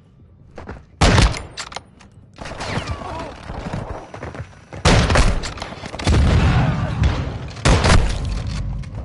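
Loud rifle shots crack, each followed by a booming echo.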